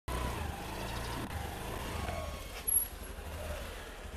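A wooden door is opened.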